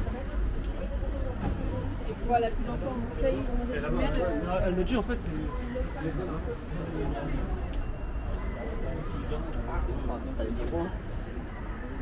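A woman talks nearby outdoors.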